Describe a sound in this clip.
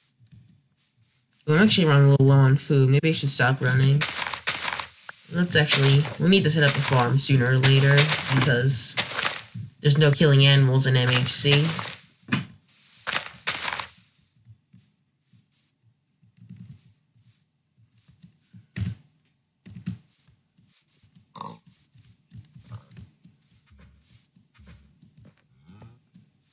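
Footsteps crunch softly on grass.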